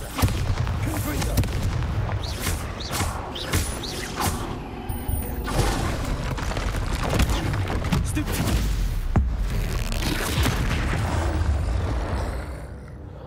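Magic spells crackle and blast during a fight.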